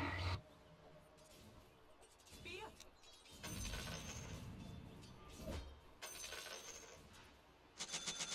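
Game creatures clash in a fight with hits and clangs.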